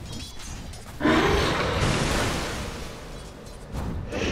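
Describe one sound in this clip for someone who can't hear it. A loud blast bursts and roars, then slowly fades.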